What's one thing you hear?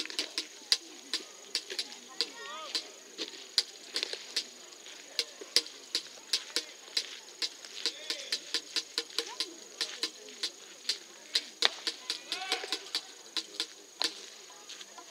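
A crowd of spectators claps and bangs noisemakers in quick, uneven beats.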